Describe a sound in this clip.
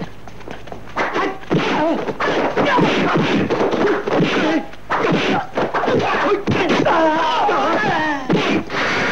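A man shouts loudly and with strain, close by.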